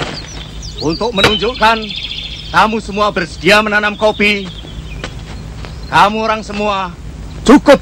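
A young man speaks firmly and close by.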